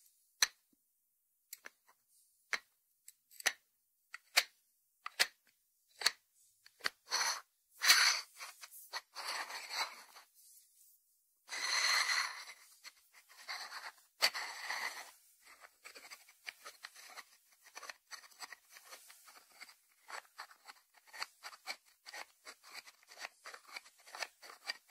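Fingertips tap on a ceramic lidded dish.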